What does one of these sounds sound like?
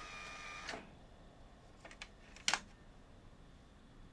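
A button clicks as it is pressed on a tape deck.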